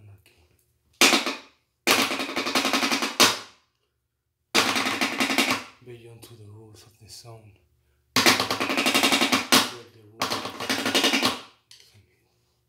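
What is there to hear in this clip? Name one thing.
Drumsticks clatter in fast, loud bursts.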